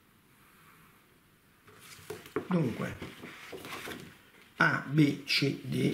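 Sheets of paper rustle as they slide over each other.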